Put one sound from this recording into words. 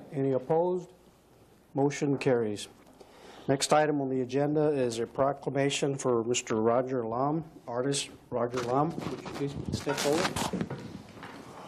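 A man speaks calmly into a microphone.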